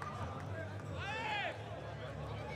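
A man shouts loudly in the crowd.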